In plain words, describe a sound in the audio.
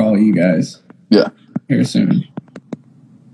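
A young man speaks briefly over an online call.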